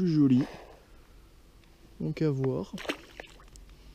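A small fish splashes back into the water.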